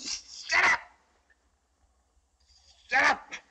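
A woman cries out in pain and sobs.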